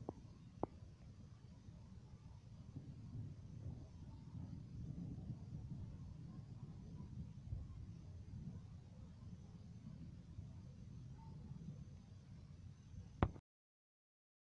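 Thunder rumbles low and long in the distance.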